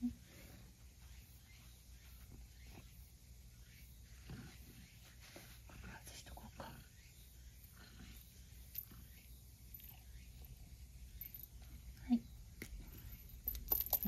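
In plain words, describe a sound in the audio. A brush rustles through a cat's fur.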